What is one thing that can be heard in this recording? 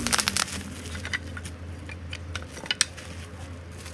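Wooden pieces knock and clatter together on a table.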